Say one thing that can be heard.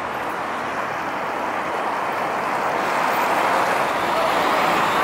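City traffic rumbles steadily along a busy street.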